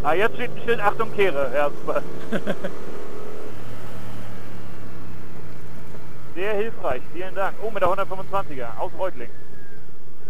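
A motorcycle engine revs up and down sharply.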